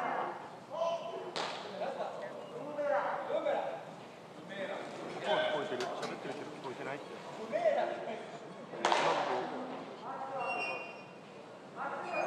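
A man talks cheerfully nearby.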